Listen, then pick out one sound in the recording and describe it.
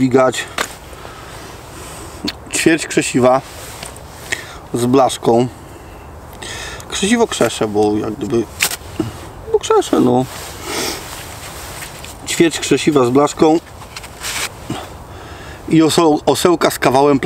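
A man talks calmly and close by, in pauses.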